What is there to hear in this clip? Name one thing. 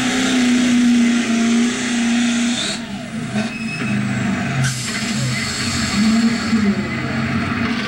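A car engine hums steadily from inside the vehicle.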